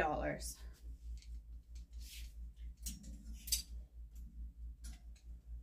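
Clothes hangers scrape and clink on a metal rail.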